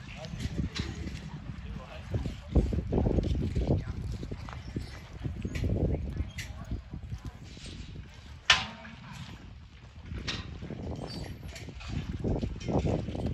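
Horses' hooves thud on soft dirt.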